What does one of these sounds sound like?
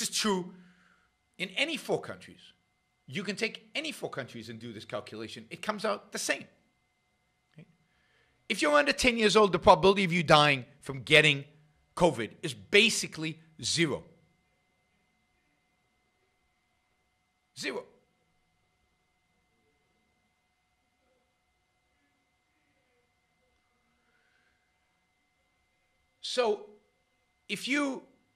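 An elderly man talks calmly into a close microphone, with long pauses.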